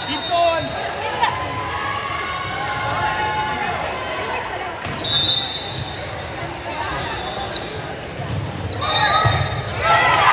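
Sneakers squeak sharply on the wooden floor.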